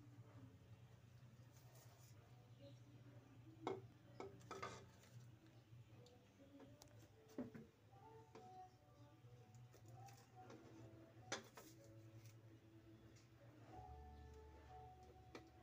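Chopsticks click and tap against a metal pot.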